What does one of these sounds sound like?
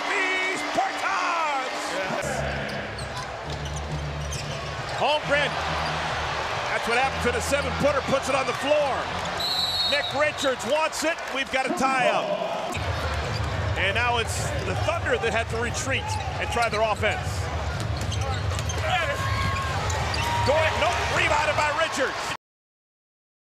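A large crowd cheers and murmurs in an echoing arena.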